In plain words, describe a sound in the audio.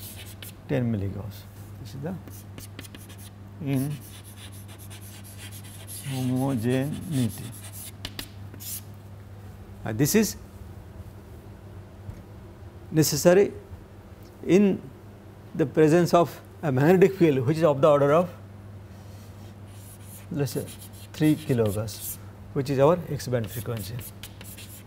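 An elderly man speaks calmly, in a pause-filled lecturing manner, into a nearby microphone.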